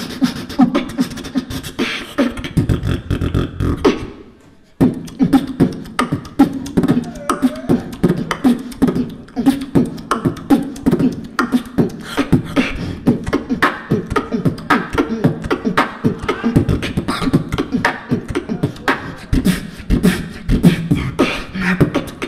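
A young man beatboxes rapidly into a microphone, heard through loud speakers with echo.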